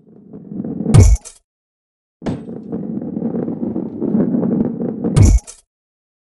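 A ball lands hard with a heavy thud.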